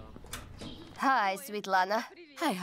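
A woman greets someone outdoors.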